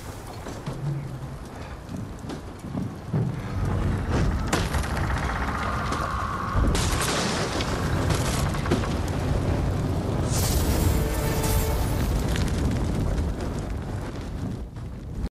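Fires roar and crackle.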